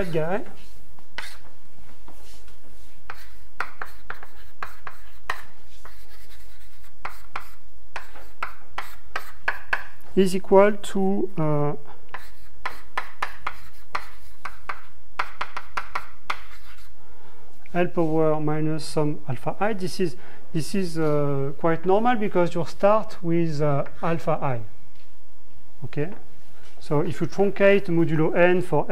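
A young man speaks calmly, explaining, close by.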